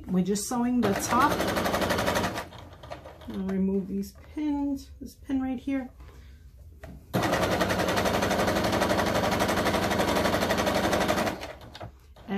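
A sewing machine runs in quick bursts of rapid stitching.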